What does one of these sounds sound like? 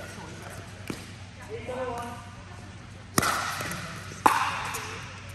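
Paddles strike a plastic ball with sharp pops that echo in a large hall.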